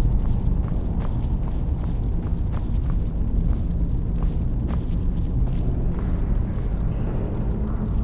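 Magic flames crackle and hum steadily.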